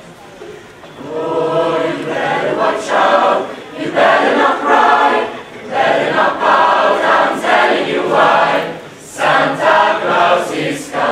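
A large mixed choir sings together in a reverberant hall.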